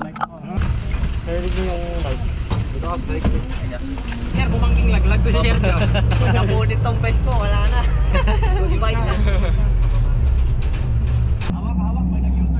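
Men talk with animation close by over the engine noise.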